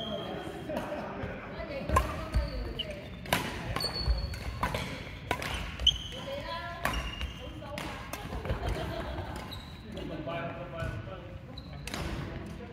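Shuttlecocks are struck with sharp pops of badminton rackets in a large echoing hall.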